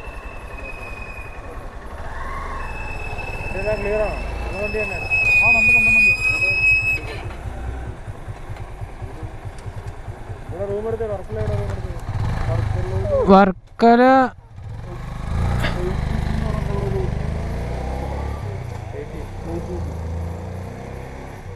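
A motorcycle engine idles nearby.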